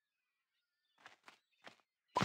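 Footsteps knock on a wooden dock.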